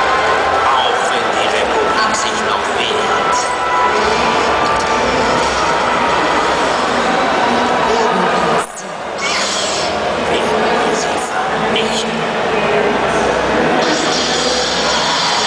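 Loud film music and effects boom through loudspeakers in a large echoing hall.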